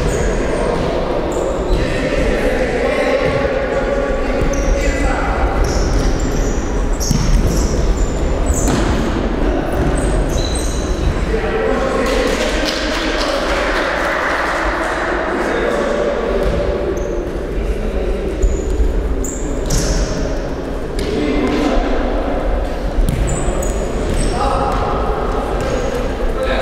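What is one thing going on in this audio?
Players' shoes squeak on a hard court in a large echoing hall.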